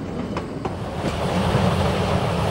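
A steam locomotive hisses and chuffs close by.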